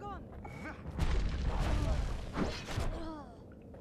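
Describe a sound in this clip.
Explosions boom and crackle in a fast video game battle.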